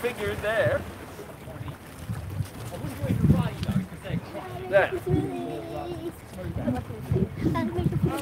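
A middle-aged man talks calmly, close by, outdoors.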